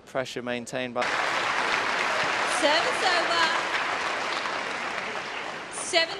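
A large crowd cheers and murmurs in a big echoing hall.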